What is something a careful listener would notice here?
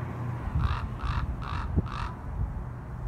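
A bird calls several times in short, harsh bursts.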